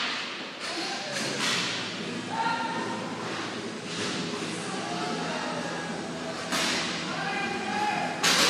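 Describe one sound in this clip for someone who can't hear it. Players shout to each other across the rink.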